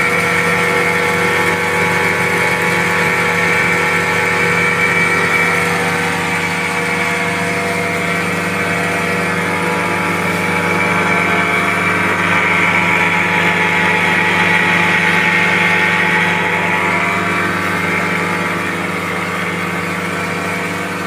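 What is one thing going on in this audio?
An outboard engine drones as a wooden motorboat cruises over the sea.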